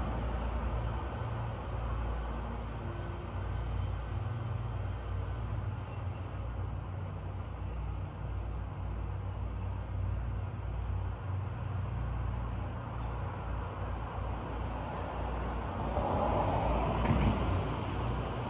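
Wind rustles through the leaves of tall trees outdoors.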